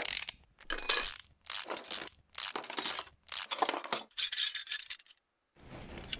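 A ratchet wrench clicks in quick bursts as bolts are loosened.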